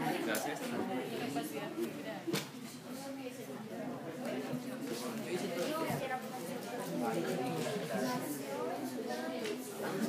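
A crowd of young people chatter at once, close by, in an echoing room.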